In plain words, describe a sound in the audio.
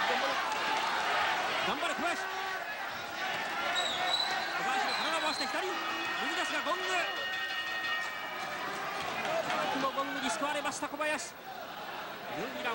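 A large crowd cheers and shouts loudly in an echoing hall.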